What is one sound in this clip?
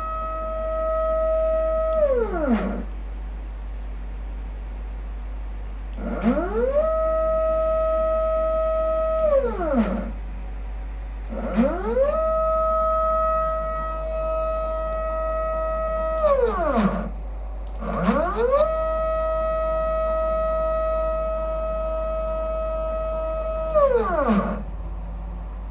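A stepper motor whines, rising in pitch, holding steady, then falling, again and again.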